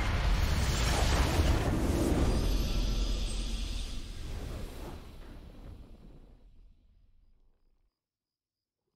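A huge crystal shatters in a deep, roaring blast that slowly fades away.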